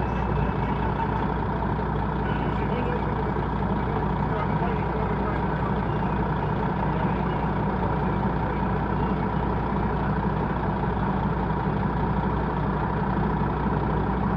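A vehicle's engine hums steadily while creeping along in slow traffic.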